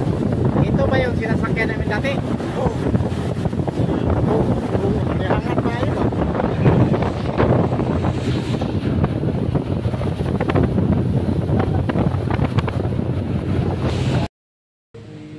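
A boat's engine roars steadily.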